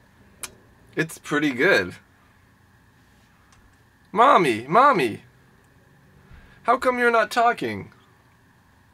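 A young man speaks in short bursts, close to a microphone.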